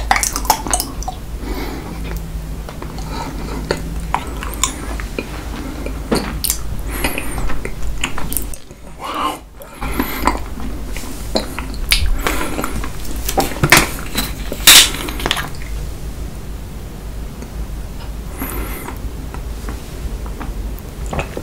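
A young man slurps and chews wetly close to a microphone.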